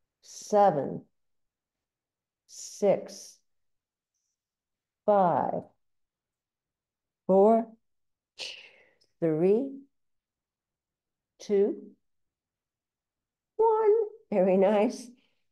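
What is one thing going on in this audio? An elderly woman speaks calmly in short, spaced phrases, close to a microphone.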